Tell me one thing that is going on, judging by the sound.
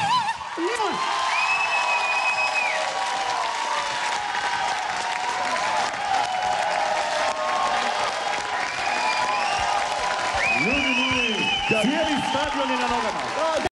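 A crowd cheers and whistles with excitement.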